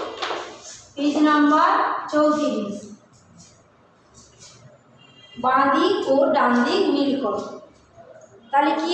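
A woman speaks aloud calmly and clearly, close by.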